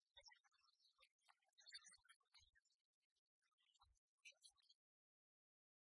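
A small crowd applauds.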